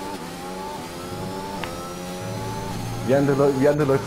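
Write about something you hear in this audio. A racing car engine whines at high revs, its pitch slowly rising.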